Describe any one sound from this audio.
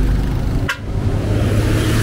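A motorbike engine putters past close by.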